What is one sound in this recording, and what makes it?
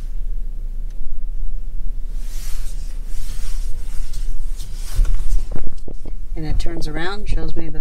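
Tyres roll on the road as a car drives.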